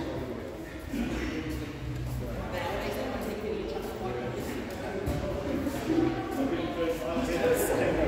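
Several men and women chat at a distance in a large echoing hall.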